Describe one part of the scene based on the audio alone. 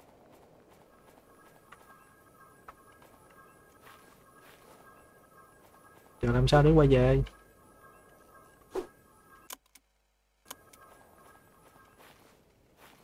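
A soft magical sparkle chimes faintly.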